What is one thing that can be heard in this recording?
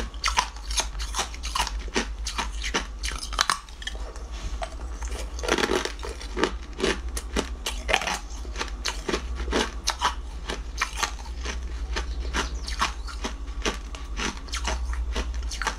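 A young woman bites and crunches loudly on crisp jelly close to a microphone.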